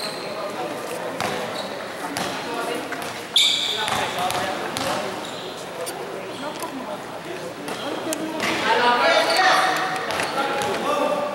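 A basketball bounces on a hard court in a large echoing hall.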